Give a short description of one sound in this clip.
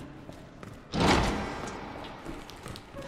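A heavy metal door swings open with a loud creak and bang.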